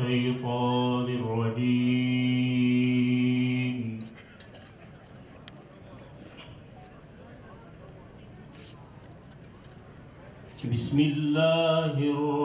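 A young man chants in long held notes through a microphone.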